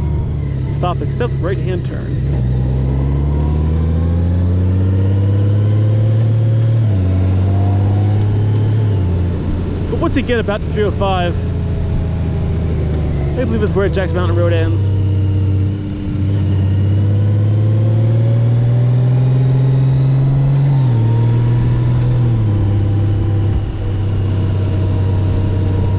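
A motorcycle engine hums steadily, rising and falling in pitch as it shifts gears.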